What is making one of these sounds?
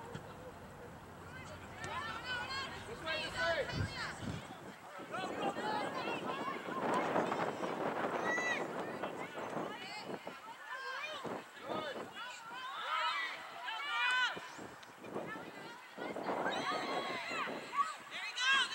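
Spectators cheer and call out from the sideline.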